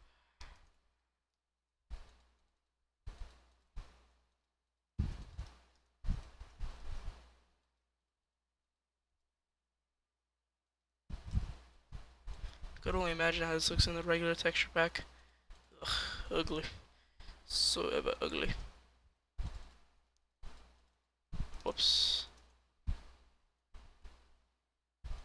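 Wooden blocks are placed with short, dull knocks.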